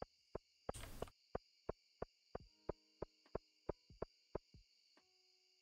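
Quick, even footsteps tap along a hard path.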